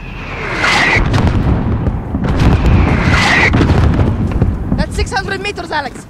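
Explosions rumble and boom in the distance.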